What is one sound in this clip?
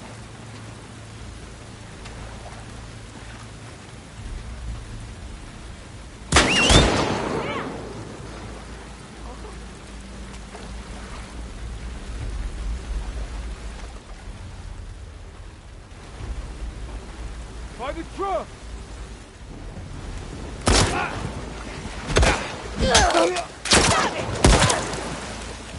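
Tall grass rustles as someone crawls through it.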